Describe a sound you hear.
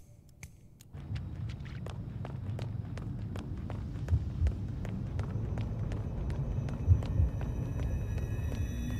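Footsteps walk steadily on a paved road.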